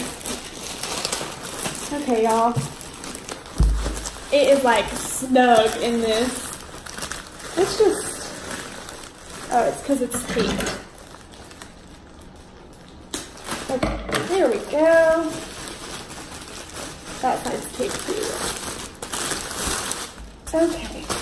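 Plastic wrapping crinkles and rustles.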